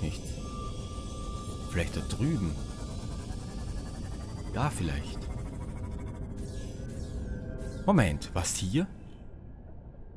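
A small submarine's engine hums low and steady underwater.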